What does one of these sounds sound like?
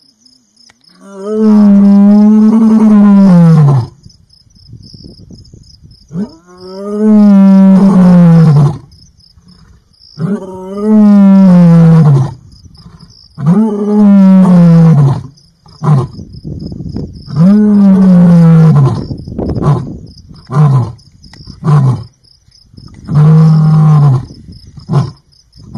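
A lion roars loudly and repeatedly at close range, each roar ending in deep grunts.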